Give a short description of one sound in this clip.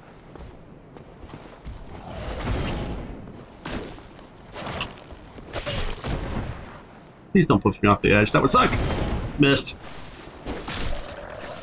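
Swords clang and strike in a fight.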